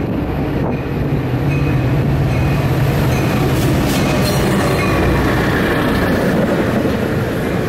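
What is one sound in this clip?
Steel wheels clatter and squeal on the rails as a train rolls past.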